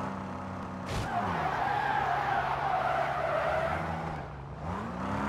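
Tyres skid and screech on the road.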